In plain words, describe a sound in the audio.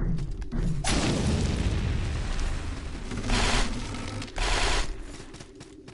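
A sword swings through the air with loud whooshing slashes.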